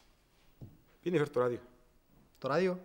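A man speaks calmly in a deep voice.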